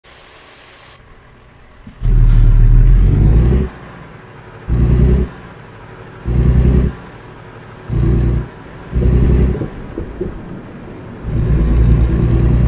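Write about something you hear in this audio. A truck engine rumbles, roaring up loudly in repeated bursts.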